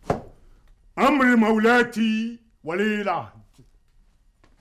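An elderly man sings loudly and theatrically.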